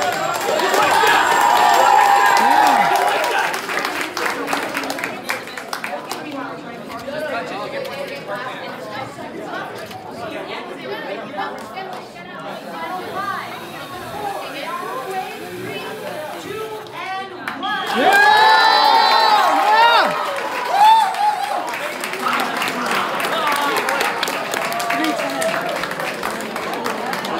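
A crowd of young people chatters and talks loudly in a large echoing hall.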